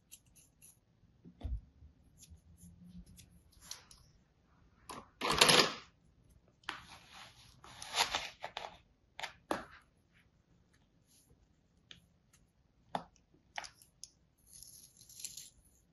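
Scissors snip and scrape through crumbly sand.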